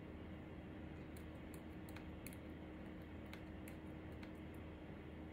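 Keys click softly on a laptop keyboard.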